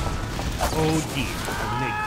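A knife stabs into a body with a wet thud.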